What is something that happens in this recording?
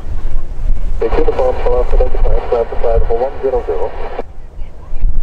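A siren wails briefly from a vehicle.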